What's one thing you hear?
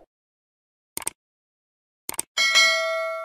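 A mouse button clicks.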